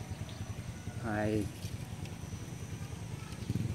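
Small drops plop softly into still water.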